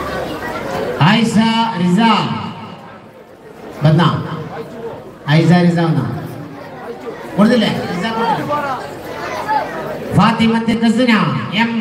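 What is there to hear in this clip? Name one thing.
A man speaks loudly and with animation through a microphone and loudspeakers.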